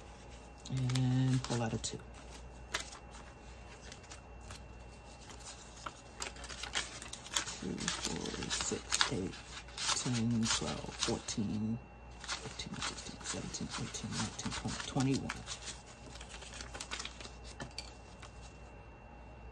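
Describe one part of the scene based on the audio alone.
Paper banknotes rustle and crinkle as they are counted by hand.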